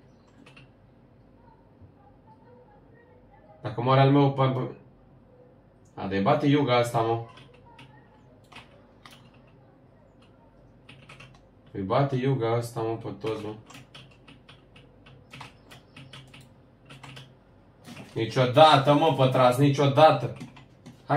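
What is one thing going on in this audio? Keyboard keys and a mouse click rapidly.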